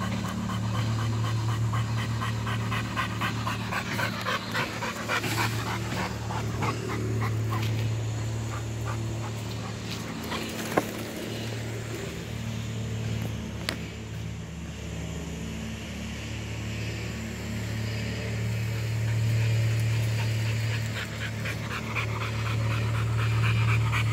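A dog pants quickly and heavily close by.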